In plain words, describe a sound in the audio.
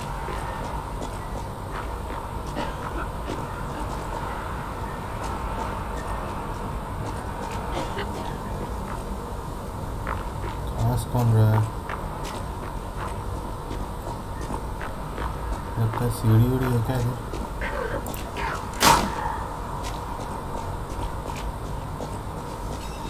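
Footsteps run over cobblestones.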